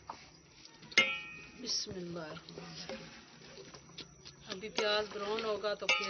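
A metal spoon scrapes against a metal pot.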